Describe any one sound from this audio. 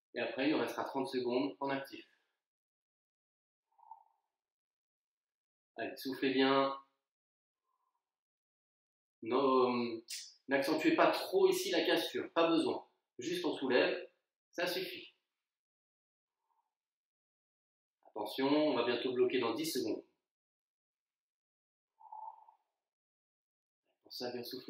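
A young man speaks calmly and close by, in short bursts with pauses.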